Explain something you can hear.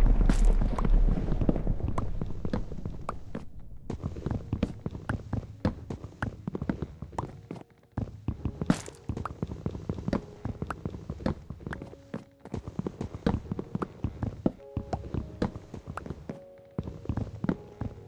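An axe chops at wood in quick, repeated knocks.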